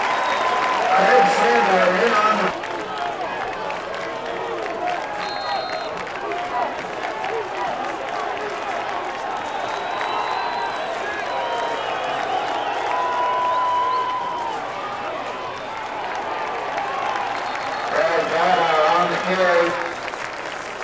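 Men shout in bursts close by.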